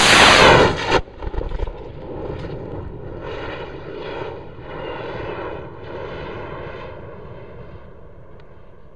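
The blast rumbles and echoes across open ground, slowly fading.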